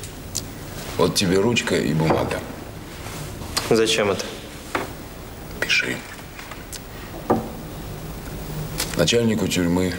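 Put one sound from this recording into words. A middle-aged man speaks.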